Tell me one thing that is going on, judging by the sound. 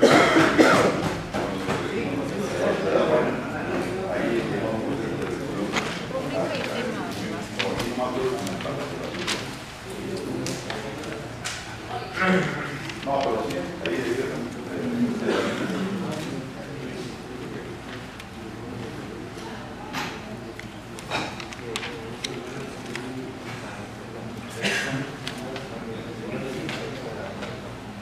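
Several people murmur in the background.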